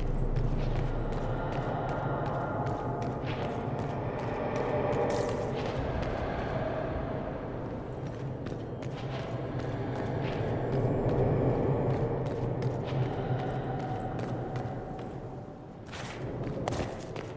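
Footsteps tap quickly on a stone floor.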